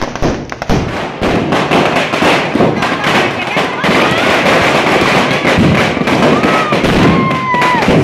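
A large crowd of men cheers and shouts nearby.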